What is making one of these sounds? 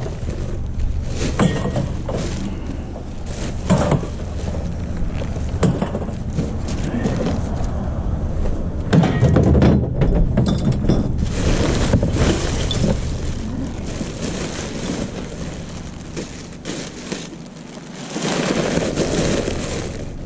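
Plastic rubbish bags rustle and crinkle close by.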